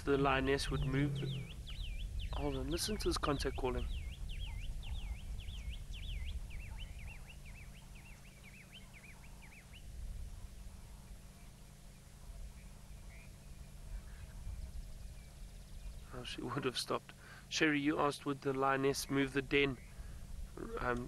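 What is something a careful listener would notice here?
A lioness pants softly close by.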